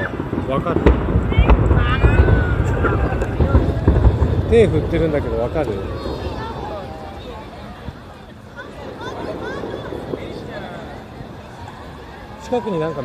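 A large crowd chatters outdoors, with voices near and far.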